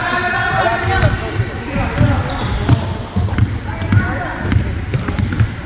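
Men shout and call out across the hall.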